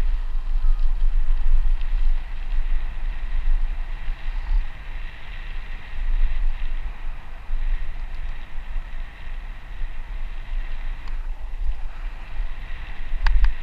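Bicycle tyres roll and crunch over a dirt path.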